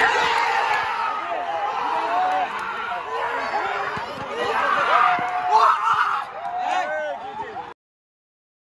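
Young men shout and cheer excitedly outdoors.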